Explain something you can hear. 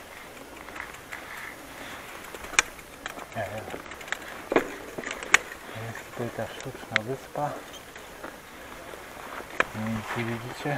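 A bicycle rattles and clicks as it rolls over a bumpy grass path.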